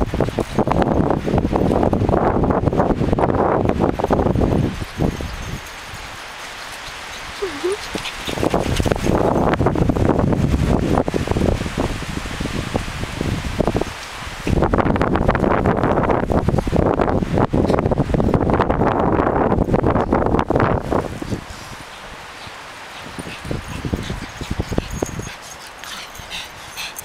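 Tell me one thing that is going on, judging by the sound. Several dogs scamper and chase each other across sandy ground.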